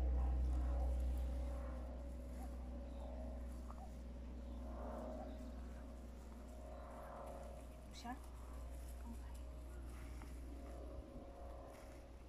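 A woman speaks calmly to a dog at a distance.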